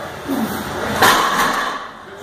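Heavy weight plates clank down on the floor.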